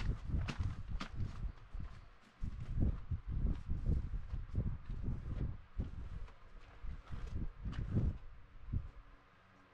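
Paper rustles and crinkles as hands press it against a painted surface.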